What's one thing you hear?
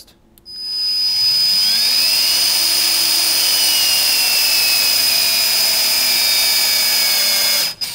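A battery-powered tool motor whirs steadily with a high whine.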